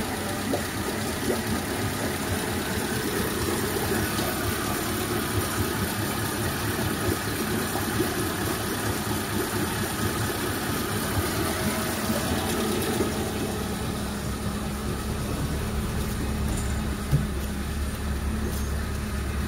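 An outboard engine runs steadily with a loud, rough idle.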